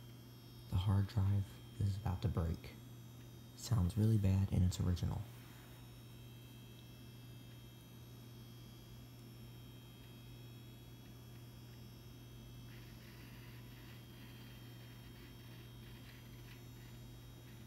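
A computer hums steadily.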